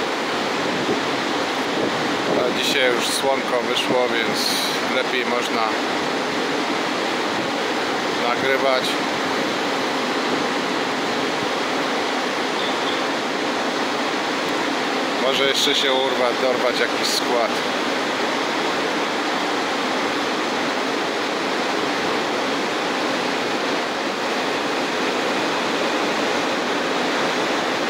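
An electric locomotive hums as it slowly rolls along a platform.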